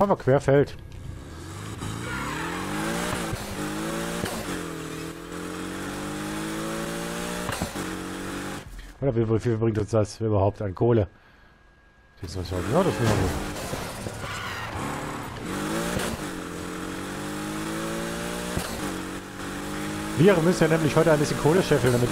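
A racing car engine roars, rising in pitch and dropping as it shifts gears.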